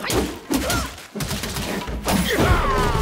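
A wooden staff strikes with heavy thuds.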